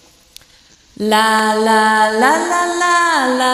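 A young woman sings through a microphone, holding long notes.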